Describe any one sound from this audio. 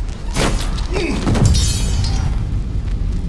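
A body falls and thuds heavily onto the floor.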